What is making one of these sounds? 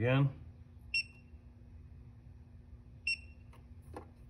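An electronic device beeps briefly.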